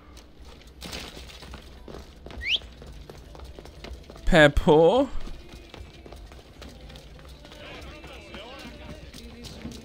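Footsteps run quickly across stone paving.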